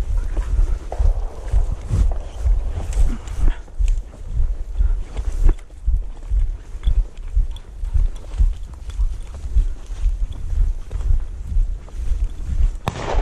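Dry grass swishes and rustles against legs.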